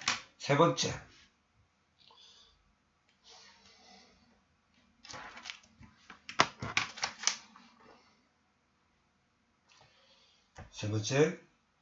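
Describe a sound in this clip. Paper rustles as hands handle a sheet.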